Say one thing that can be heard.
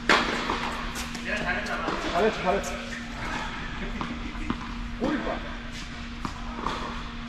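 Tennis balls thump off rackets in a large echoing hall.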